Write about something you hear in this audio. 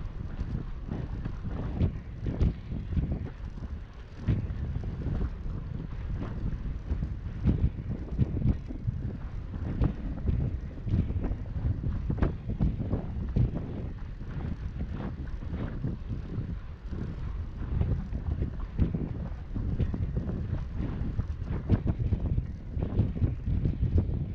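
Bicycle tyres hum on a smooth path.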